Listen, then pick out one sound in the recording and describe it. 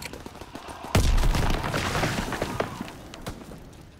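A shotgun fires with a loud, booming blast.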